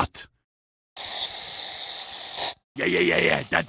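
A squeeze bottle squirts with a steady hissing spray.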